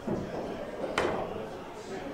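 A cue strikes a pool ball with a sharp click.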